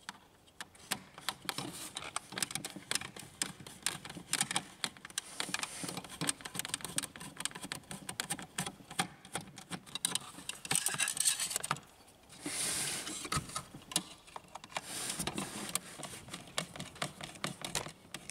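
Plastic parts rattle as hands handle them.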